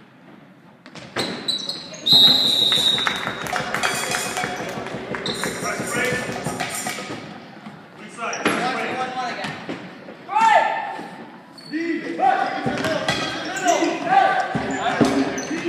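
A crowd of young spectators shouts and cheers.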